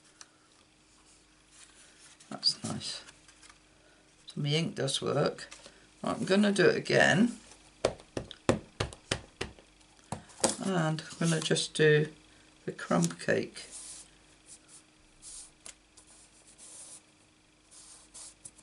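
Stiff card rustles and taps as it is handled.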